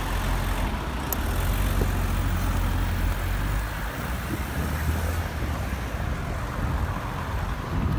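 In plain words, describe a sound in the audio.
Wind rushes past loudly outdoors.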